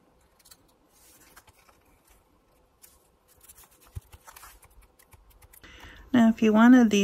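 Paper rustles softly as hands press and smooth it.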